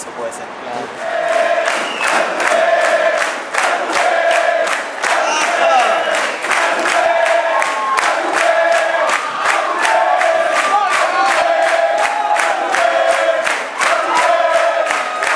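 A man sings into a microphone over a rock band.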